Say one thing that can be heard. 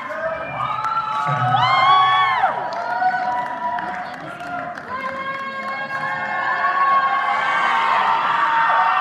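A large choir sings in harmony in an echoing hall.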